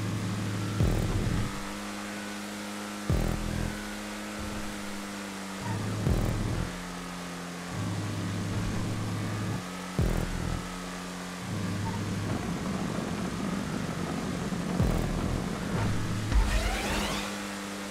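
A race car engine roars steadily, jumping in pitch at each gear change.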